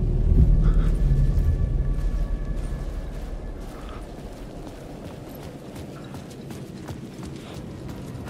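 Footsteps walk on wet pavement.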